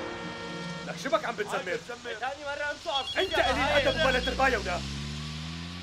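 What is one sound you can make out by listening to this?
A man speaks urgently nearby.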